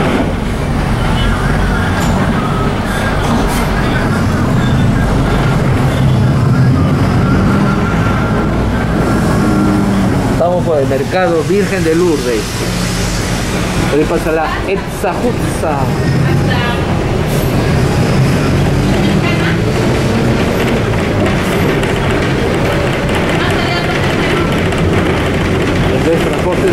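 Traffic passes by on a nearby road.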